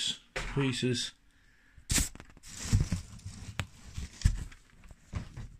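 Plastic and paper items rustle and bump as they are handled up close.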